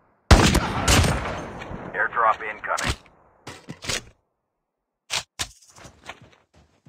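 Metal clicks and clacks as a rifle is reloaded.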